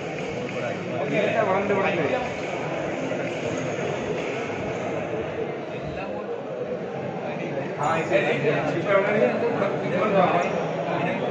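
Young men talk and call out in a large echoing hall.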